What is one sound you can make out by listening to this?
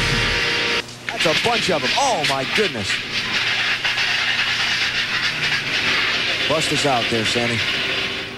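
Cars crash into each other with loud bangs.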